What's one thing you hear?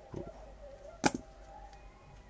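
A small metal tool clicks down on a hard surface.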